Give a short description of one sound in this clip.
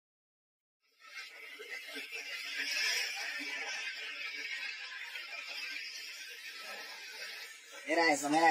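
Water churns and splashes.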